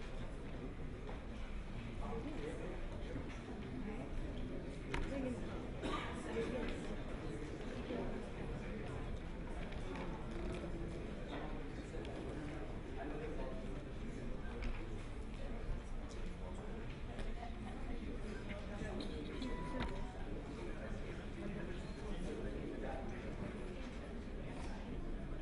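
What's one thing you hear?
A crowd of men and women chatter throughout a large room.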